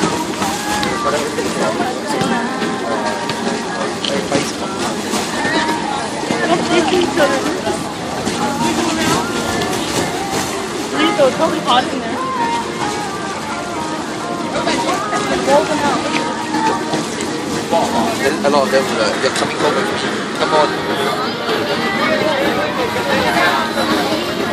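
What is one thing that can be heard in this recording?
Water splashes and sloshes in a shallow pool.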